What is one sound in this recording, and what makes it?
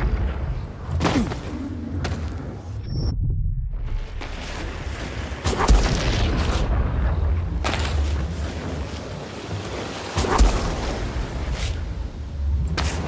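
A body slides fast over ice with a steady rushing scrape.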